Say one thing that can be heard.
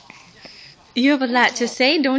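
A baby coos and babbles loudly, close by.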